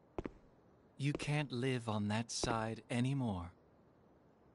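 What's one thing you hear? A man speaks coldly and calmly.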